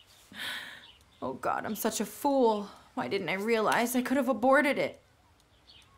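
A young woman speaks, close by.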